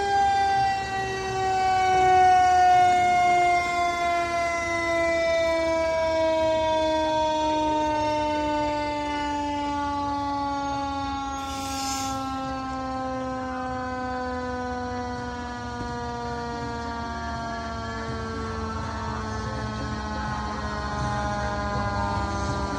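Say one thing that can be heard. A fire engine's siren wails loudly and slowly winds down in pitch.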